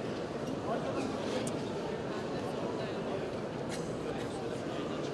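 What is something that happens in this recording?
A crowd of men and women murmurs and talks in a large echoing hall.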